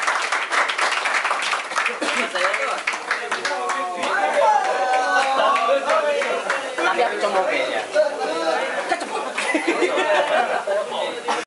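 A group of young men talk and laugh loudly nearby in a lively, crowded room.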